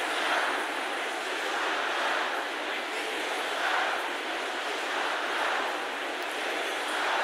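A large crowd chants loudly together in a big echoing hall.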